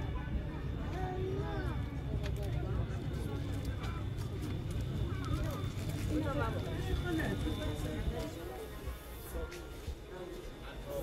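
Several women talk nearby.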